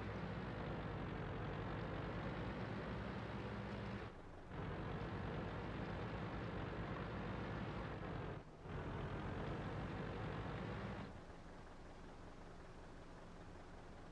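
A tank engine rumbles loudly as the tank drives over rough ground.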